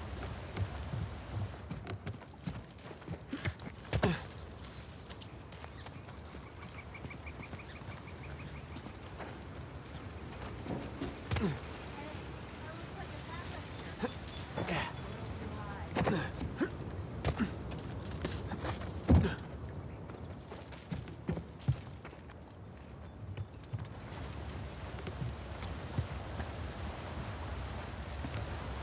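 Footsteps run over grass and leaves.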